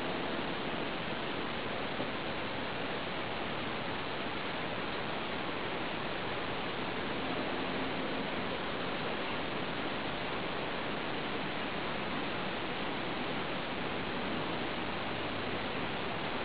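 A lump fizzes and bubbles steadily in a bucket of water.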